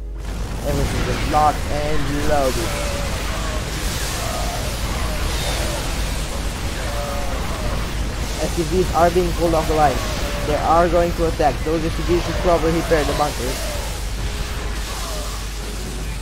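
Explosions burst in a battle.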